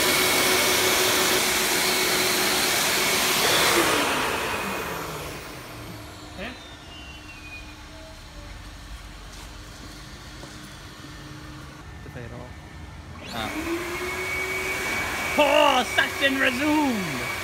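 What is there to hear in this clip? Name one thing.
A powerful air blower roars loudly.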